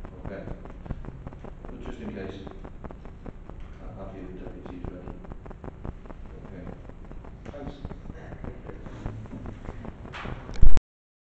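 A man speaks calmly through a microphone in a room with a slight echo.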